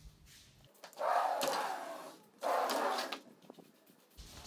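A sliding door rolls along its track.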